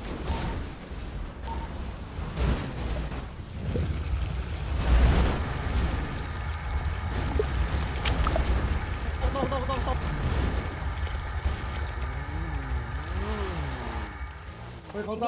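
A car engine roars as a car bumps over rough ground.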